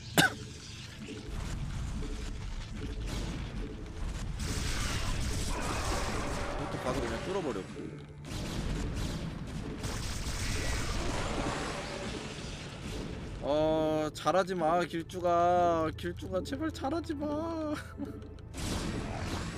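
Battle sounds from a video game clash and rumble.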